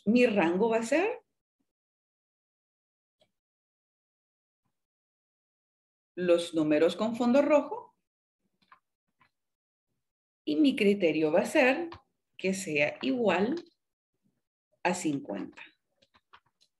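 A woman speaks calmly through a microphone, in short phrases with pauses.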